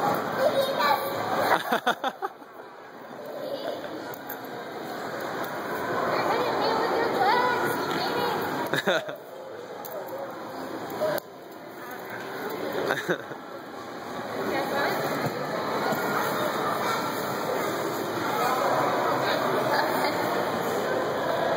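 Crowd chatter murmurs in a large echoing hall.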